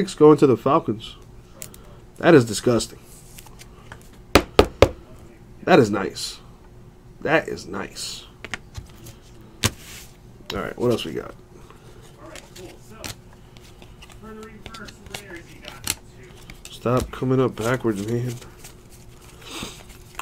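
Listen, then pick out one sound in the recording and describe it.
Trading cards rustle and slide as hands handle them.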